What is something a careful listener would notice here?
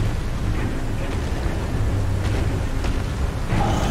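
Sword strikes clang against a shield.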